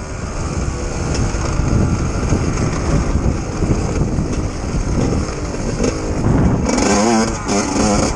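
Tyres crunch over dry leaves and dirt.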